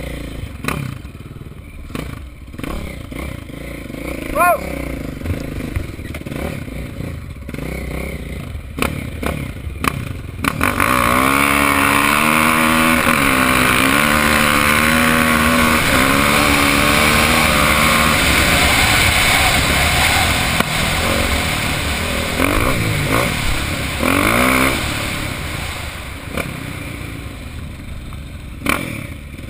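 A motorcycle engine revs and roars up close, rising and falling in pitch.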